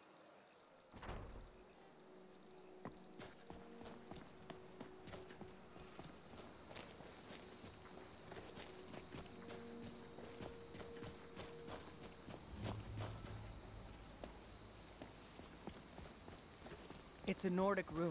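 Footsteps crunch on gravel and stone at a steady walking pace.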